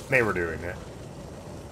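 A man exclaims briefly into a close microphone.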